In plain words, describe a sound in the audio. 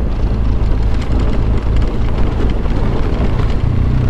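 Motorcycle tyres rumble over rough cobblestones.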